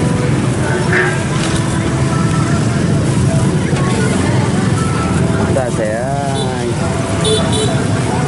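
Motorbike engines rumble steadily nearby outdoors.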